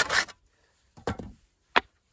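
A block of wood clatters onto a pile of wood.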